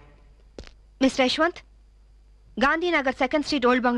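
A young woman speaks urgently into a phone, close by.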